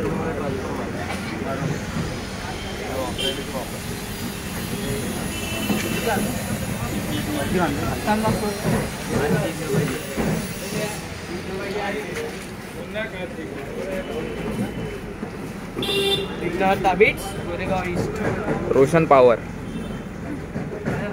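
Several young men talk nearby.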